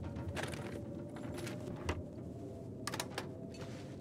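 A microwave door clicks open.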